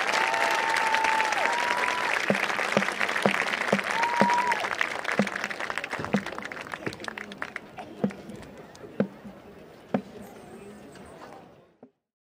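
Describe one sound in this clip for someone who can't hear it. A large crowd cheers and applauds outdoors, slowly fading.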